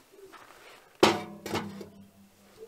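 A metal pot clanks down onto a stove.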